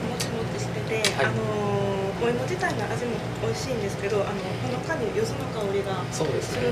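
A young woman speaks with delight nearby.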